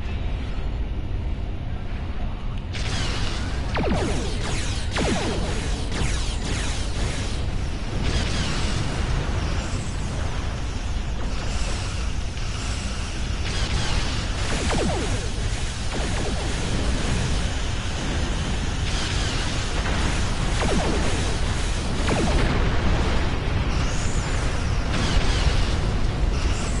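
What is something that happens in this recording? A deep engine rumble drones steadily.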